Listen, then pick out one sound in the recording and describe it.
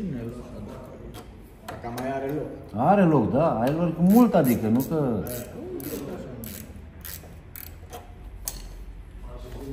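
A wrench clicks and clinks against metal bolts.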